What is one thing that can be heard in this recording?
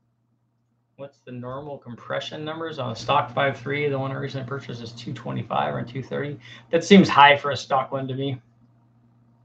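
A middle-aged man speaks calmly and close to a microphone, as if on an online call.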